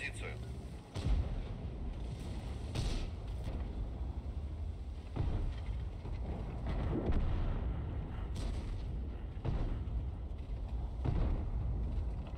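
A tank cannon fires with heavy booms.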